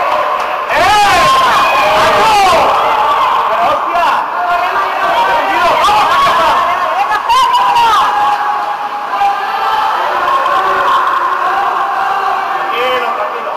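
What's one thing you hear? Men shout loudly in an echoing hall.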